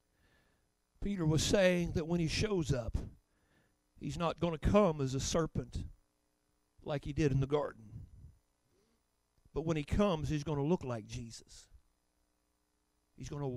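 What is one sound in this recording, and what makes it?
An elderly man speaks slowly and deliberately into a microphone, heard through loudspeakers in a large room.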